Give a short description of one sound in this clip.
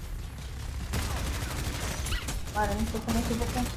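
Gunfire rattles rapidly in a video game.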